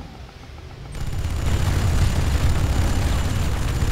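Heavy vehicle engines rumble low and steadily.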